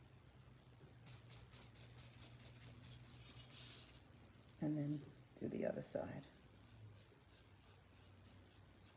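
A brush scratches softly and rhythmically against a ceramic figure.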